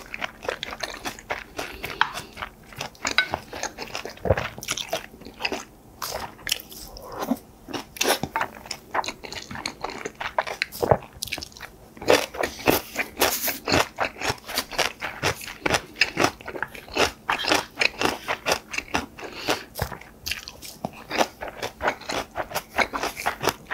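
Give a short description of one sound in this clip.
A man chews and slurps food loudly and close by.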